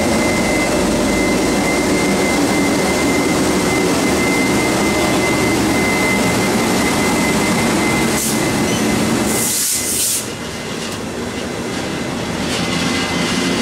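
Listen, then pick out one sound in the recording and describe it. An electric locomotive hums steadily close by.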